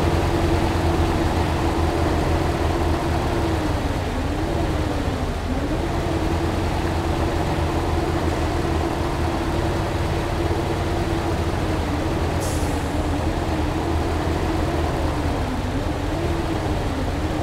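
A hydraulic crane arm whines as it swings.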